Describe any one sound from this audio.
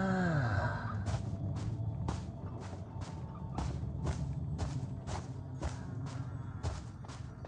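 Footsteps thud at a steady, brisk pace.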